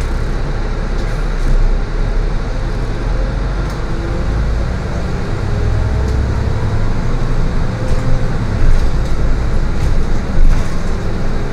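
A tram motor whines and rises in pitch as the vehicle pulls away.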